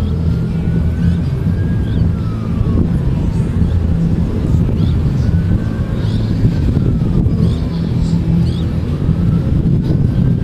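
Waves wash gently onto the shore.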